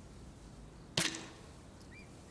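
A bowstring snaps as an arrow is loosed.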